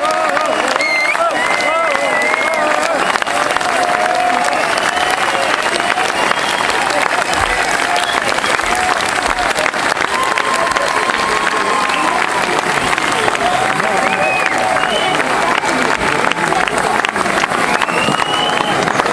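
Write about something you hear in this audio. A large crowd cheers and whistles loudly outdoors.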